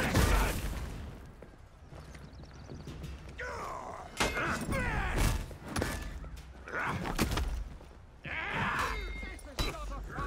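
Metal weapons clash and strike in quick blows.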